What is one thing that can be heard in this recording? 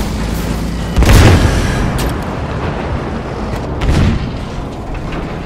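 A loud explosion booms and echoes.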